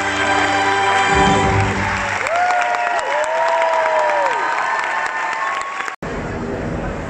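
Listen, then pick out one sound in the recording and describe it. Orchestral music plays loudly in a large hall.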